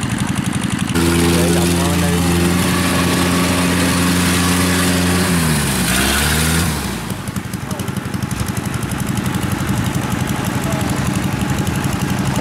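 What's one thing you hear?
A combine harvester engine drones steadily nearby.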